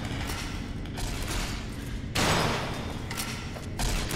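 Heavy metal-armoured footsteps clank on a walkway.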